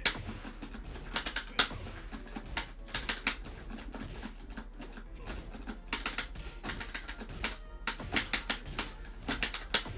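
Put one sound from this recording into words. Punches and kicks land with sharp, heavy smacks again and again.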